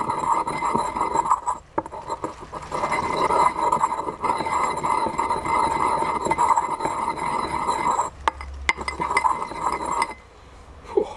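A pestle grinds and scrapes in a stone mortar.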